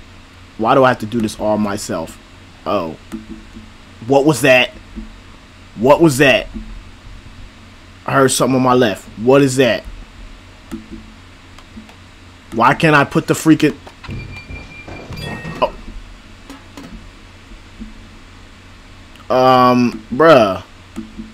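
A young man talks excitedly into a microphone in short bursts.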